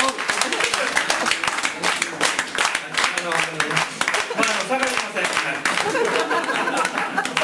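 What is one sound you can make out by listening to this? A guitar is strummed with a quick rhythm.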